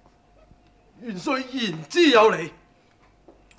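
A man speaks firmly in reply nearby.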